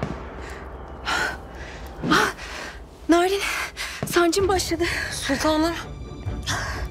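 A young woman cries out and groans in pain.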